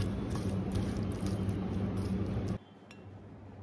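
Hands squish raw prawns in a metal bowl.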